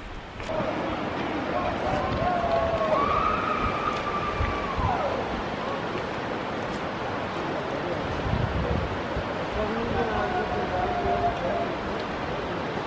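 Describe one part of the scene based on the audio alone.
Young people shout and cheer with excitement from a distance, outdoors.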